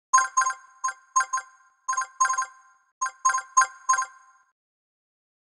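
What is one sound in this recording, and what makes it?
Bright chiming pings ring out in quick bursts as gems are collected.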